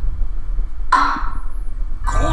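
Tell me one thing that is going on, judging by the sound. A gavel bangs once on a wooden block.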